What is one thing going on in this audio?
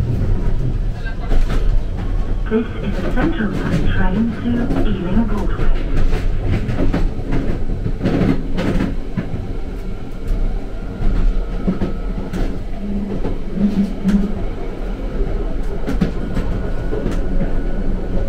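An underground train rumbles and rattles loudly along the tracks.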